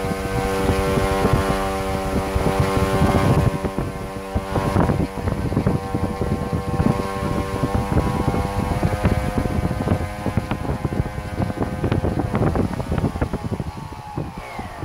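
A motor rattles and buzzes as it spins.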